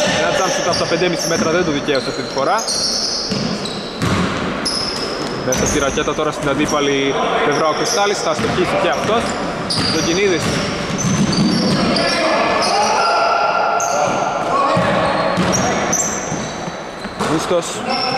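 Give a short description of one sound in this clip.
Men shout and call out to one another across the court.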